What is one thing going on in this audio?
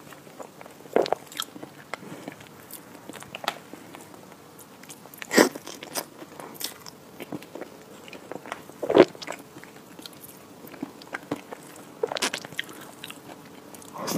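A spoon scrapes and clinks against a dish.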